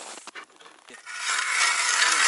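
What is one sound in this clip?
A hand auger grinds into ice.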